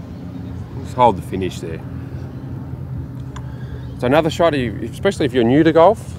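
A man speaks calmly outdoors.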